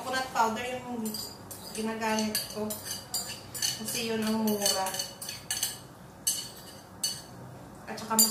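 Batter sizzles as it is poured into hot oil in a pan.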